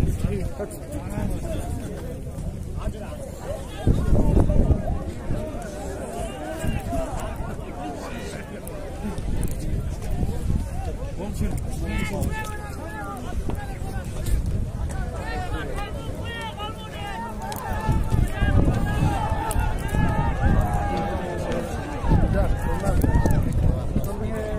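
A large outdoor crowd shouts and chatters all around.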